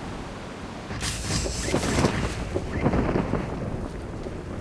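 A parachute bursts open with a loud flapping whoosh.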